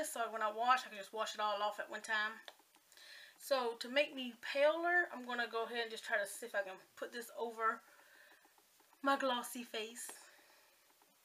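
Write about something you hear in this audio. A woman talks closely into a microphone, calmly and with animation.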